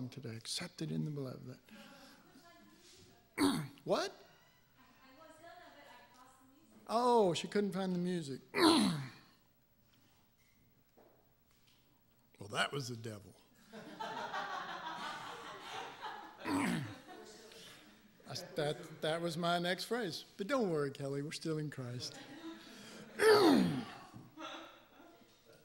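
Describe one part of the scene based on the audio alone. A middle-aged man speaks with animation into a microphone in an echoing hall.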